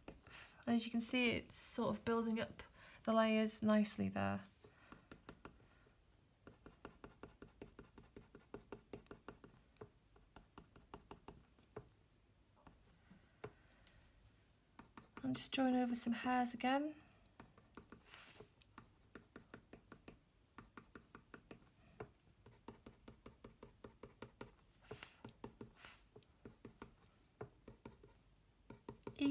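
A pencil scratches rapidly across paper in short, quick strokes.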